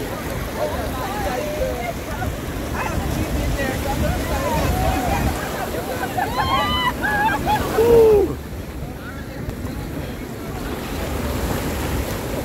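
Waves wash and splash around people wading in the sea.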